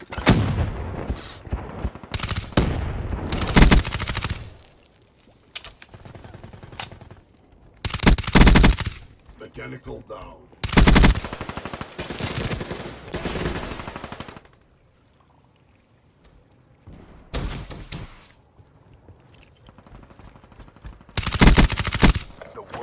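Rapid gunfire rattles in short, loud bursts.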